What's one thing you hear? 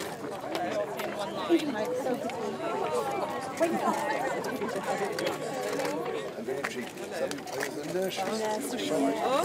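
A crowd of men, women and children chatter close by outdoors.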